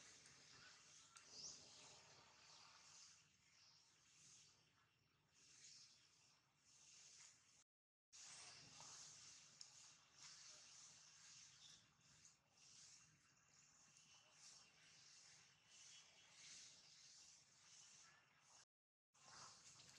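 Dry leaves crunch and rustle under a monkey's feet.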